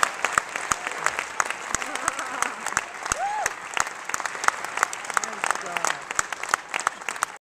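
A jazz band plays in a large hall.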